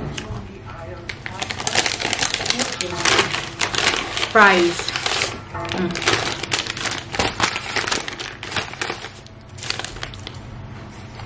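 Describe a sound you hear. A paper bag rustles and crinkles close by.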